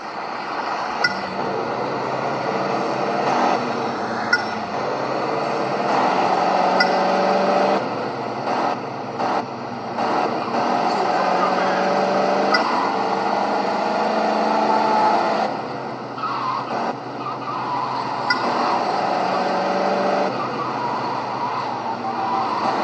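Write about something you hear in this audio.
A game car engine revs and hums steadily.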